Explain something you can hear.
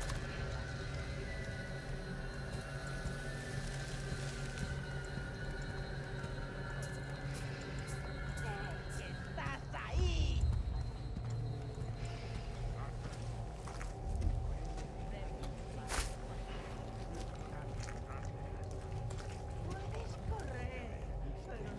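Footsteps tread on dirt ground.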